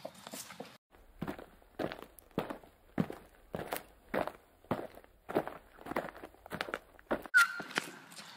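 Footsteps slap on pavement as children run.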